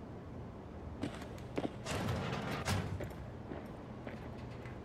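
Footsteps walk slowly away.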